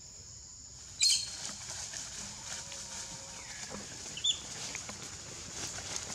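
Leaves rustle as monkeys chase through the undergrowth.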